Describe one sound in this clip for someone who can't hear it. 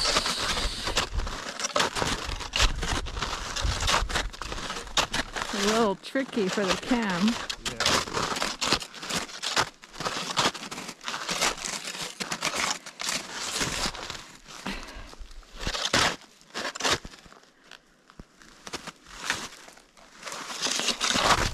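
Snowshoes crunch steadily through deep snow, step after step.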